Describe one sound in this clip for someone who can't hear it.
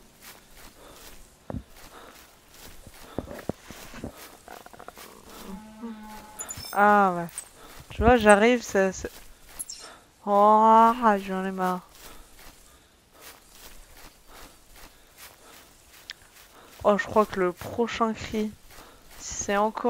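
Footsteps crunch through snow and brush.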